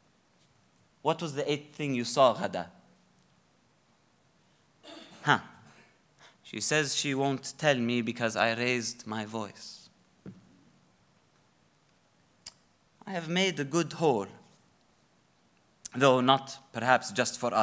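A young man speaks with animation into a microphone, in short bursts with pauses.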